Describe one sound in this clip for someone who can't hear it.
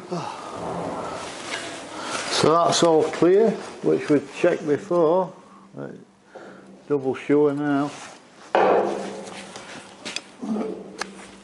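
Metal clanks and scrapes.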